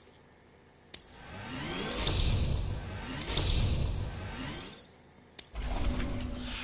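Bright electronic tones chime and sweep upward in quick bursts.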